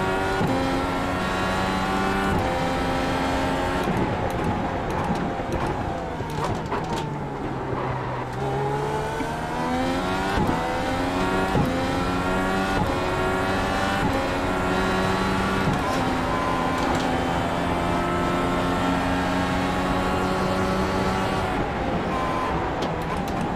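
A racing car's engine roars loudly, its pitch climbing through each gear and dropping with each shift.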